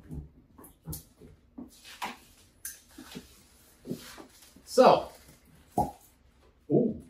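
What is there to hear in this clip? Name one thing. A glass bottle clinks on a table.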